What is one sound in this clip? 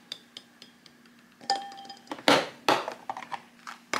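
Eggs knock and splash softly into a bowl of water.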